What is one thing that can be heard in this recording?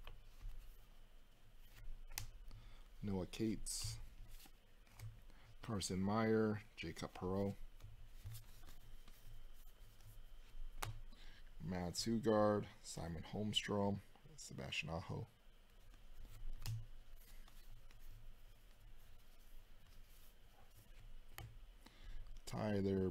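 Trading cards rustle and slap as hands flip through a stack.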